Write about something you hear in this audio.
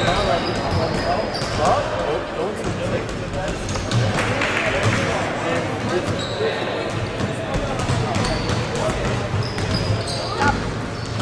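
Sneakers squeak sharply on a wooden court, echoing in a large hall.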